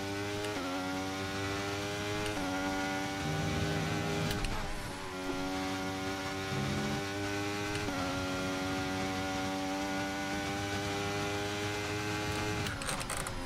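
A racing car engine screams at high revs, shifting gears up and down.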